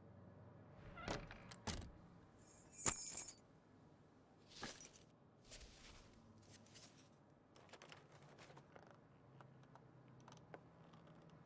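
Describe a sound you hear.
A bag rustles and its buckles clink as hands rummage through it.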